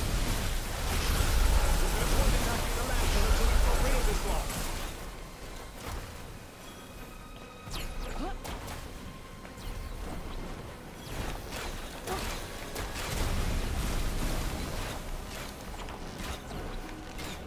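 Crystal shards shatter and tinkle.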